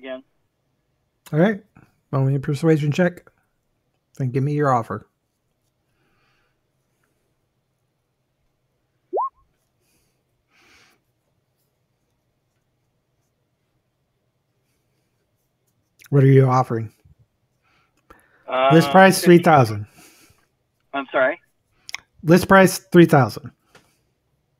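A man speaks over an online call, in short bursts with pauses.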